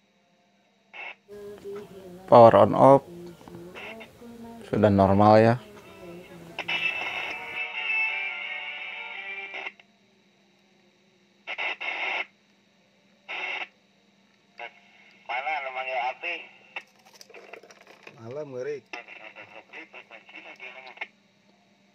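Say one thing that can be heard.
A mobile two-way radio's loudspeaker gives bursts of static hiss as the radio is tuned across channels.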